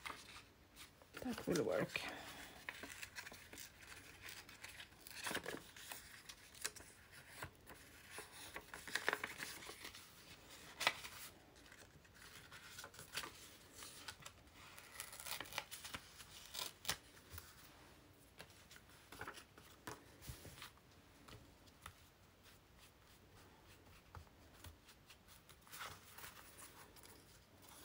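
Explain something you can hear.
Paper rustles and crinkles as hands handle it close by.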